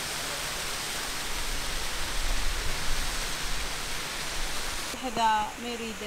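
Water from a waterfall splashes and rushes steadily.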